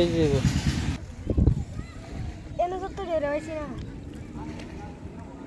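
Water splashes as a boy wades.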